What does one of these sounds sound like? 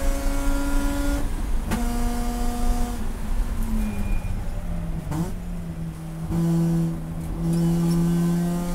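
A race car engine roars loudly from inside the cabin, its pitch jumping and dropping with each gear change.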